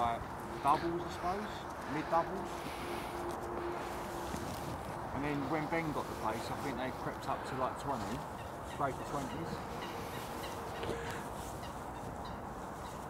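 Fabric rustles and crinkles as a mat is handled.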